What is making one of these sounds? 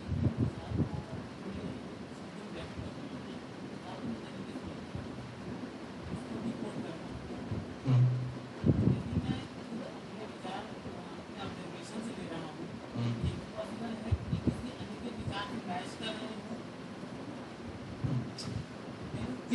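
Members of an audience murmur and talk among themselves.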